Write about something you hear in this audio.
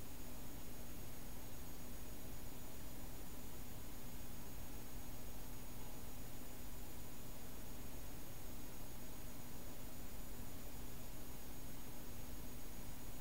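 A small electric motor hums as its rotor spins.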